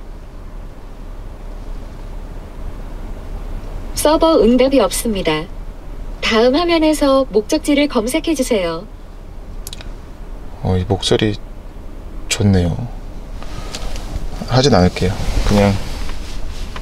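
A car engine hums low and steady inside the cabin.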